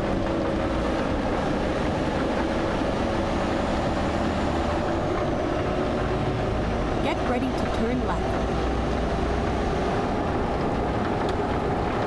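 Windshield wipers swish back and forth.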